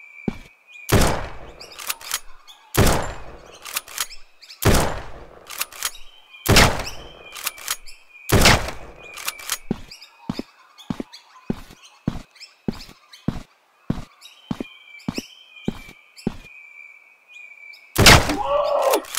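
A rifle fires loud single shots that echo briefly.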